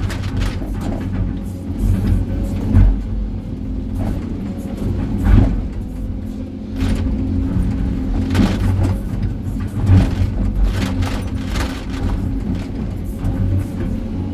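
Rocks and rubble clatter and thud as a digger bucket scoops them.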